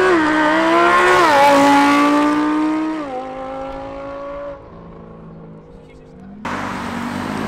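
A sports car engine roars loudly as the car speeds past.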